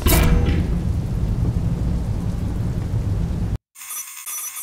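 A lift rumbles low and steadily as it moves.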